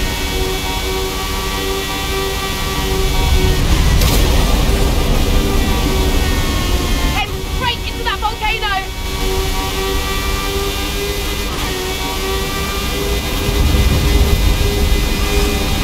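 A racing car engine screams at high speed.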